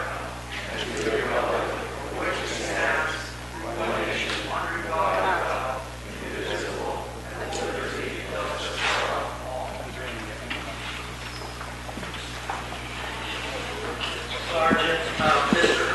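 A crowd of people recites together in a large echoing hall.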